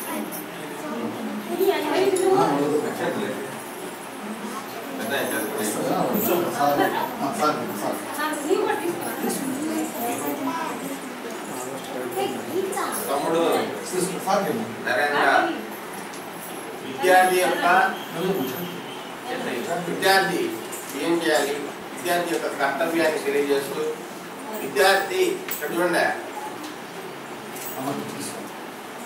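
A man speaks loudly to a crowd in a room with some echo.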